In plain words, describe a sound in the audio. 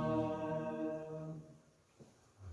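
A choir sings in a reverberant hall and holds a final chord.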